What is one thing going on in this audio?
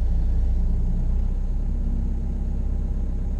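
A diesel engine's sound drops slightly as it eases off.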